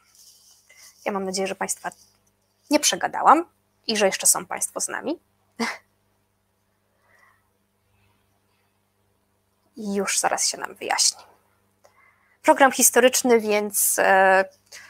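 A young woman speaks with animation, heard close through a microphone.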